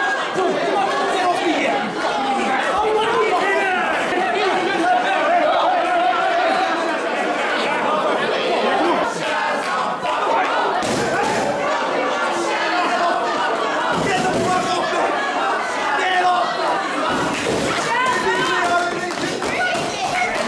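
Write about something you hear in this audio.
A crowd of men and women shouts and cheers close by in a large echoing hall.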